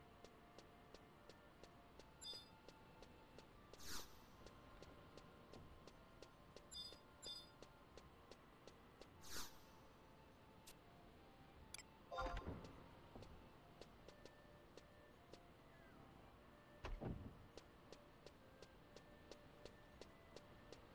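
Quick, steady footsteps tap on a hard floor.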